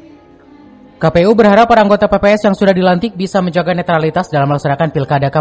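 A choir sings through loudspeakers in a large echoing hall.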